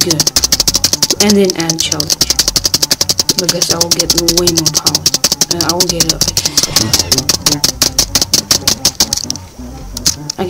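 Rapid electronic game ticks sound as items are collected in quick succession.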